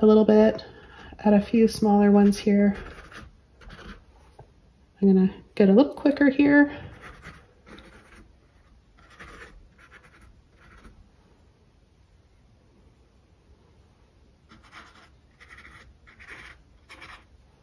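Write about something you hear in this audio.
A paintbrush dabs and brushes softly on canvas.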